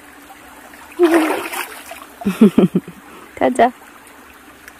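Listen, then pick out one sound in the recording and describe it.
A young girl laughs and shouts happily close by.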